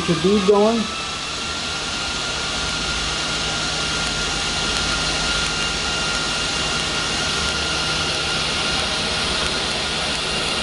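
A welding arc crackles and hisses steadily.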